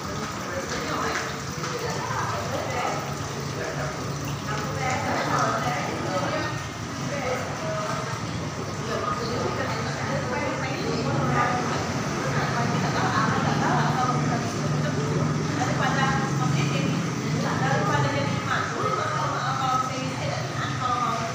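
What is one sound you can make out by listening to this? A ceiling fan whirs steadily overhead.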